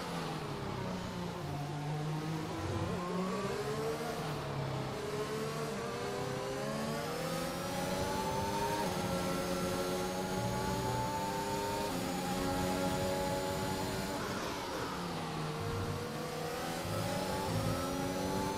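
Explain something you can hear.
A racing car engine screams, rising in pitch as it speeds up and dropping as it brakes, with sharp gear changes.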